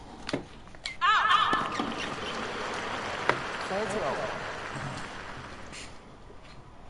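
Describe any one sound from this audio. A crowd applauds and cheers.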